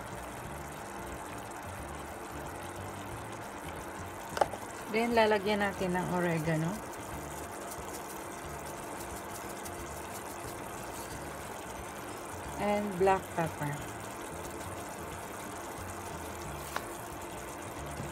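A thick sauce simmers and bubbles softly in a pan.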